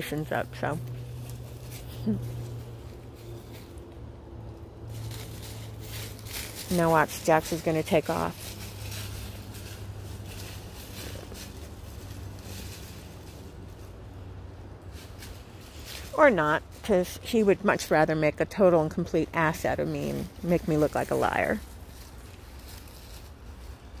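Dogs run through dry leaves, rustling them.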